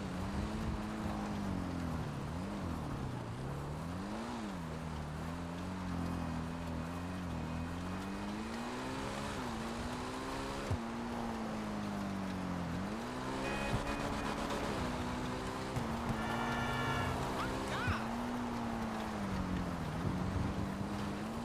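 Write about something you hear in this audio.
A motorcycle engine revs and whines, rising and falling in pitch.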